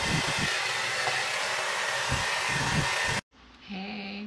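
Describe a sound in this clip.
A hair dryer blows loudly and steadily.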